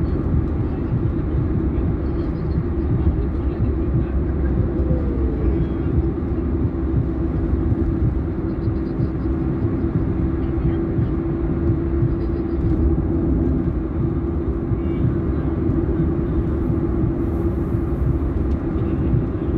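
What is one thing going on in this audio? A car's engine hums steadily as it drives along a highway.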